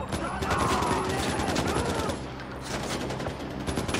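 Rapid gunfire cracks in short bursts.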